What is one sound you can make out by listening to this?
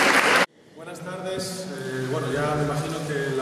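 A mixed choir begins singing in a large echoing hall.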